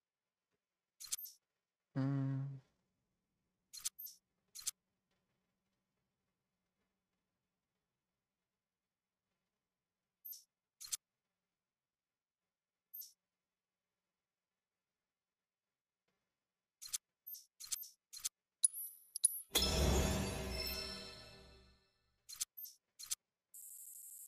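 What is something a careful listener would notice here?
Short soft menu clicks tick now and then.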